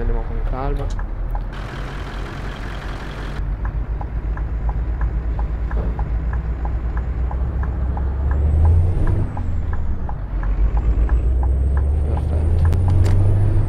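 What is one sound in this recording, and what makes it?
A truck engine drones steadily, rising in pitch at times.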